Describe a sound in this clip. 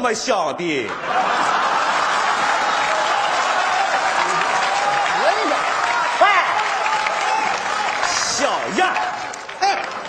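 A large audience laughs loudly in a big hall.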